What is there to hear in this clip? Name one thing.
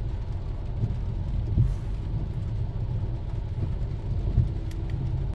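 Rain patters on a car's windshield.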